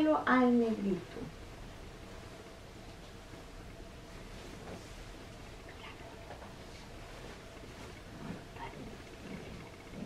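A nylon barber cape rustles as it is shaken out.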